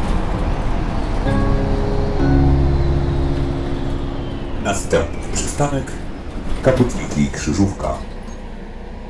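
A diesel city bus drives along with its engine droning.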